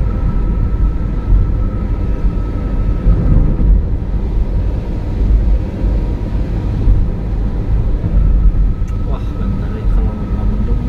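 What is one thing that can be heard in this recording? Tyres hiss and rumble on a wet road.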